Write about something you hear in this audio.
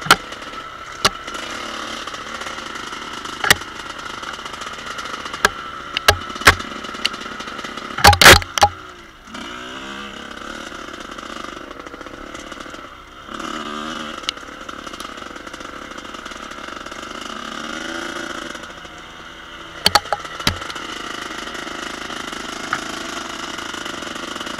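A dirt bike engine buzzes steadily and revs up and down.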